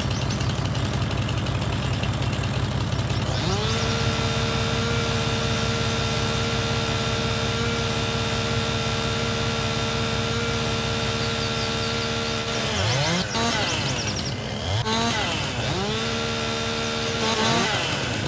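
A chainsaw engine idles with a low, rapid throb.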